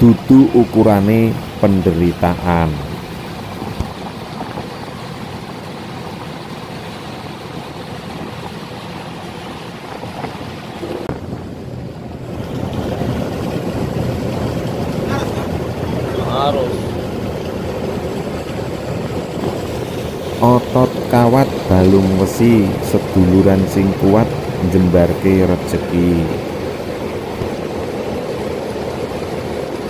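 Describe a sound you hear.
Water rushes and splashes against a moving boat's hull.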